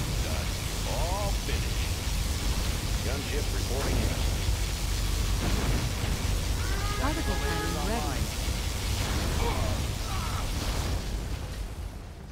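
A powerful energy beam hums and roars steadily.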